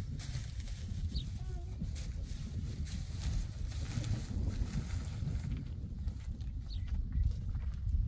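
A woman's footsteps crunch on dry dirt as she walks closer.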